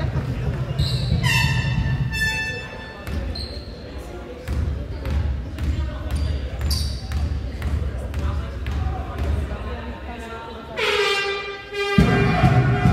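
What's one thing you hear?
Basketball shoes squeak sharply in an echoing hall.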